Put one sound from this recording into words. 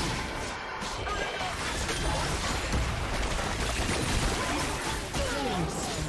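Game spell effects crackle and burst in quick succession.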